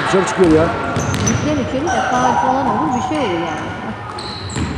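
Young women shout and call out to each other in a large echoing hall.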